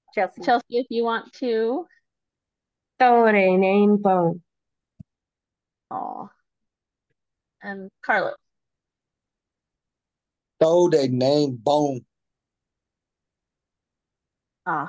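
A woman speaks slowly and clearly in short phrases over a microphone on an online call.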